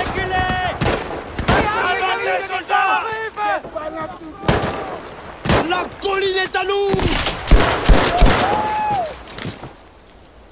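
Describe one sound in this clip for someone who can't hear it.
Gunfire cracks in rapid bursts close by.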